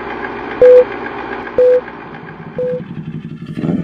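Three short beeps sound in a countdown.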